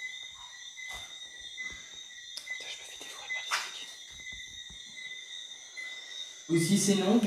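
An electronic meter emits a steady high-pitched whine.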